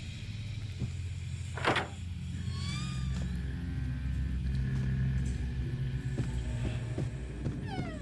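Footsteps thud slowly.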